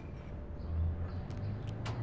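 A spoon scrapes in a cereal bowl.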